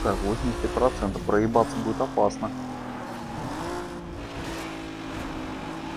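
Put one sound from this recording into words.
A car engine roars at high revs, its pitch shifting as gears change.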